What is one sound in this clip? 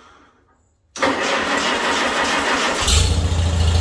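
A starter motor cranks an old tractor engine.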